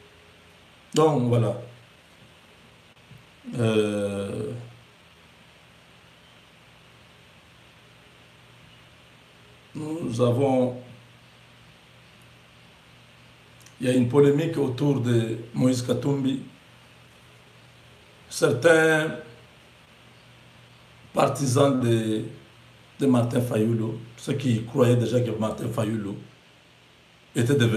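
A man speaks calmly and close up, in short phrases with pauses.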